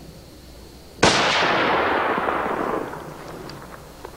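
A shotgun fires once with a loud blast that rings out.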